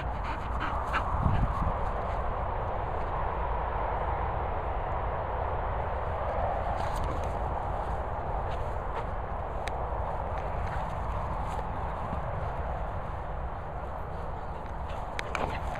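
A dog runs across grass, its paws thudding softly.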